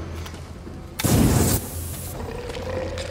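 A burst of flame roars loudly.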